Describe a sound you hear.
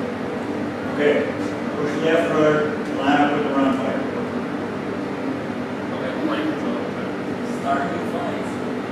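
An older man speaks quietly nearby.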